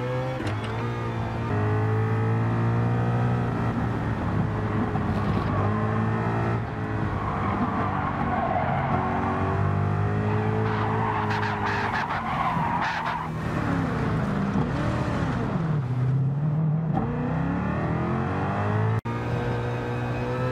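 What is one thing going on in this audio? A racing car engine roars at high revs, shifting gears up and down.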